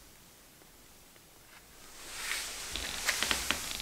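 A match strikes and flares with a hiss.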